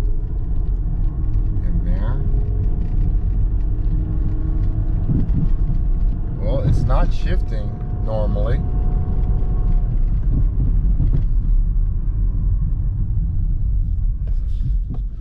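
A car engine hums steadily with a low rumble from inside the car.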